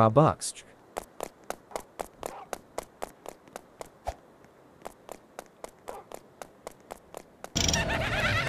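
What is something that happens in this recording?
Quick footsteps patter steadily on hard ground.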